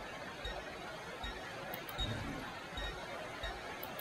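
A menu clicks softly.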